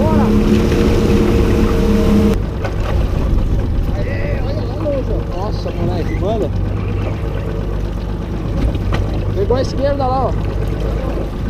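Wind blows steadily over the microphone out on open water.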